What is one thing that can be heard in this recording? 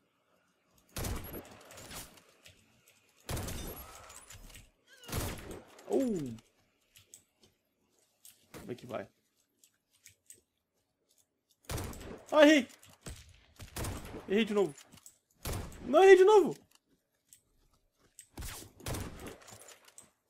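Sniper rifle shots crack loudly, each followed by a rolling echo.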